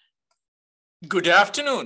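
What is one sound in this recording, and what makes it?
A man begins speaking through an online call.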